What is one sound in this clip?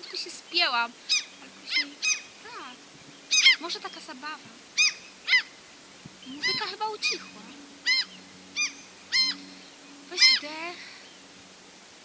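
A woman speaks calmly and quietly outdoors.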